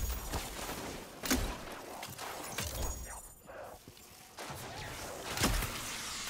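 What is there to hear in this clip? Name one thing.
Electric energy crackles and zaps.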